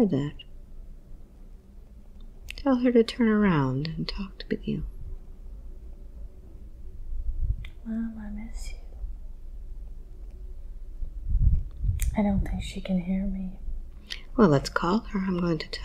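A woman speaks softly and slowly, close to a microphone.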